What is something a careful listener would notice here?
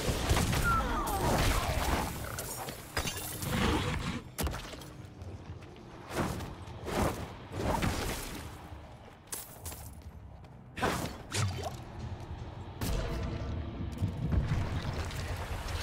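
Spell effects in a video game burst and crackle.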